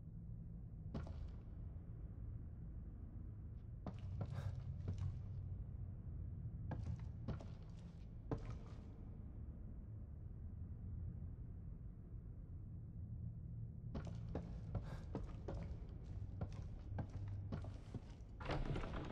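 Footsteps tap on a wooden floor.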